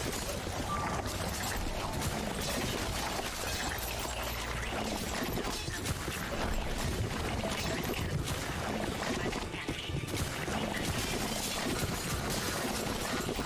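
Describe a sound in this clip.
A spray gun hisses out a stream of slime.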